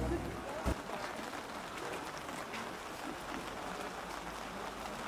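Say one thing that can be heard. A group of people murmur and chat outdoors nearby.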